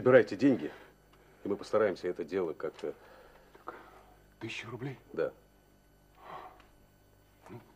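A middle-aged man speaks in a low, serious voice close by.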